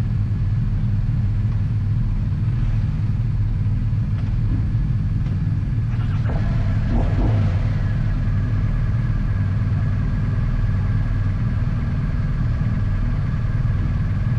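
A motorcycle engine idles close by with a steady low rumble.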